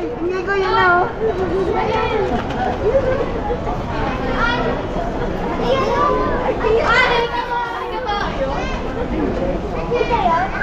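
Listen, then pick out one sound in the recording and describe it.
Women nearby shout and cheer excitedly.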